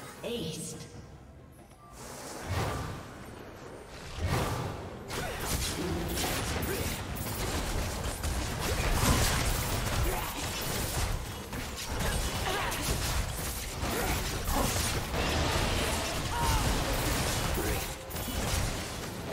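Fantasy game battle effects crackle, whoosh and clash in quick bursts.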